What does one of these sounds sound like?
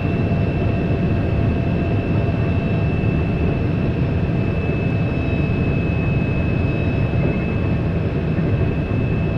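An electric motor whines with a steady high tone.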